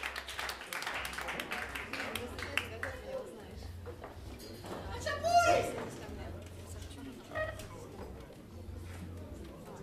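A saxophone plays a melody.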